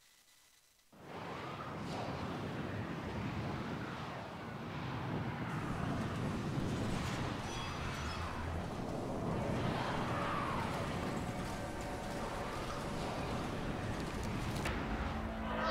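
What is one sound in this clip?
Spaceship engines roar and whoosh steadily.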